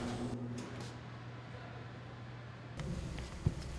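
A baker sets loaves down on a wire rack.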